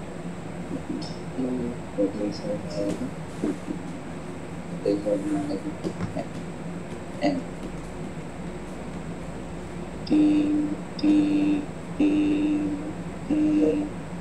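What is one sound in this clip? A man speaks calmly and close to a microphone, with long pauses.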